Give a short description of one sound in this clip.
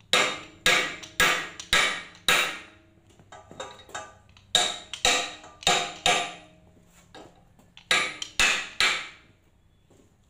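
A hammer strikes metal in sharp ringing blows.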